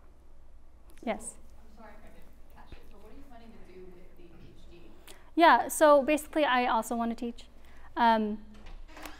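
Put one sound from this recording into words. A young woman speaks calmly to a room.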